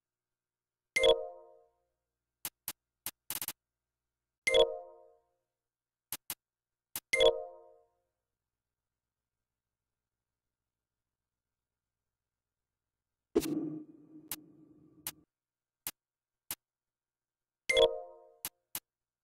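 Soft chimes sound as menu choices are confirmed.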